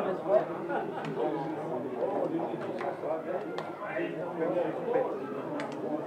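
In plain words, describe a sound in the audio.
Hands slap together in high fives.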